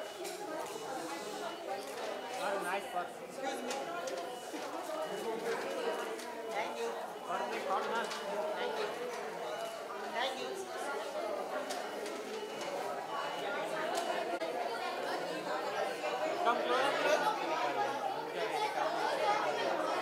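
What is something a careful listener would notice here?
A crowd of people chatters loudly all around.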